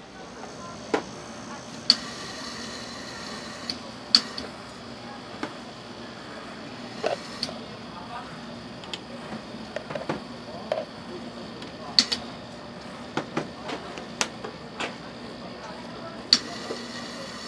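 Small berries drop and click onto a metal pan.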